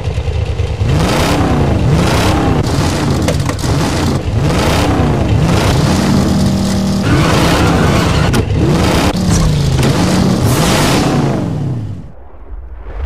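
Motorcycle engines roar loudly, revving up and down over and over.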